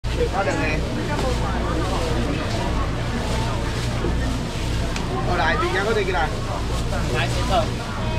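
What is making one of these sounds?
A crowd murmurs and chatters close by.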